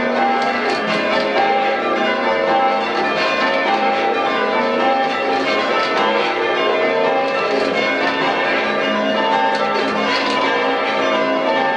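Large bells ring out loudly, one after another, in a steady peal.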